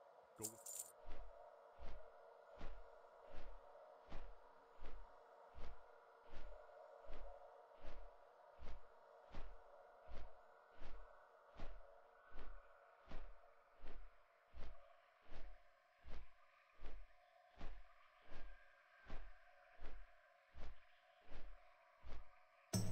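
Large wings flap with heavy, regular whooshing beats.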